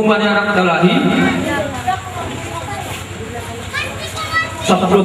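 A man reads out aloud through a microphone and loudspeakers.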